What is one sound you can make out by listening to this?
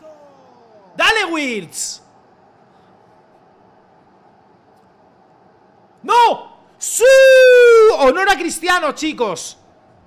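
A young man shouts excitedly, close to a microphone.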